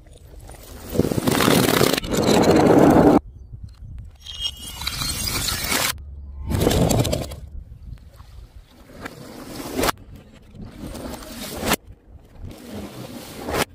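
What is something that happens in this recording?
Glass jars smash onto stone tiles.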